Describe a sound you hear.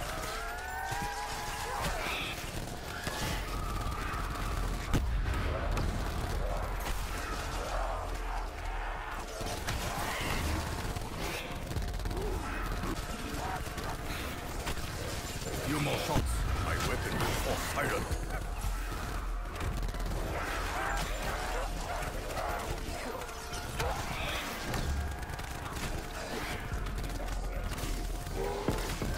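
An electric gun crackles and zaps in bursts.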